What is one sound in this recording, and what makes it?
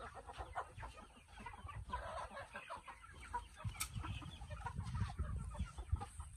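Chickens cluck close by.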